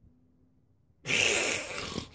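A kiss smacks close by.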